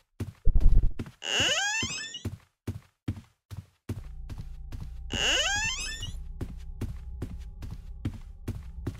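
Footsteps thud at a steady pace on a hard floor.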